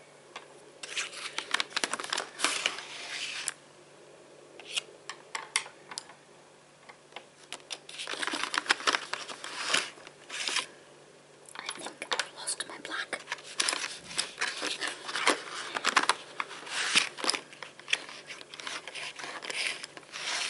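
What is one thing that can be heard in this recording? Wooden pencils rattle and clatter in a cardboard box.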